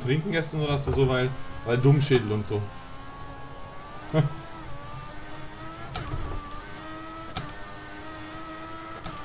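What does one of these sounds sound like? A racing car engine whines at high revs, rising in pitch between gear shifts.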